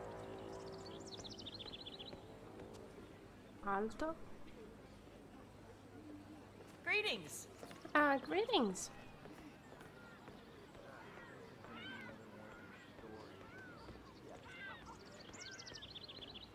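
Footsteps tap on stone paving.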